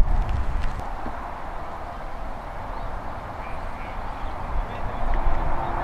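Footballs thud as they are caught and thrown.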